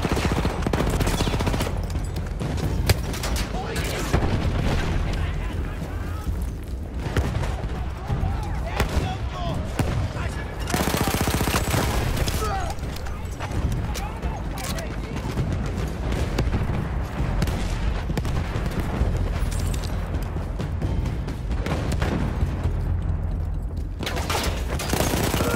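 Explosions boom and rumble nearby throughout.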